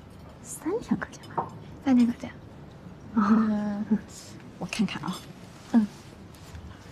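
A young woman speaks quietly and questioningly, close by.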